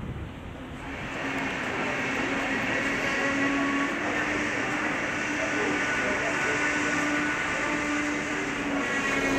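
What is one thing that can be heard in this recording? An electric locomotive approaches along the tracks with a loud, steady rumble and hum.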